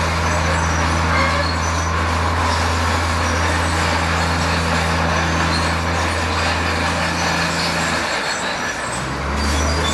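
A bulldozer engine drones steadily, dipping briefly and then rising again.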